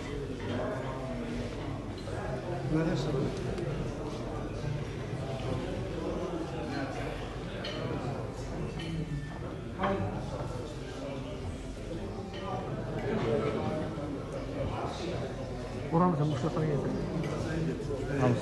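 Dishes and cutlery clink on tables.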